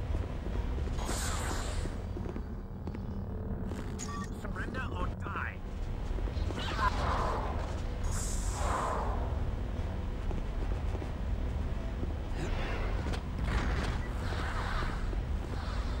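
A lightsaber swooshes through the air now and then.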